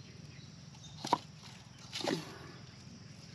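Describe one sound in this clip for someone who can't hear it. Dry coconut shells knock lightly together.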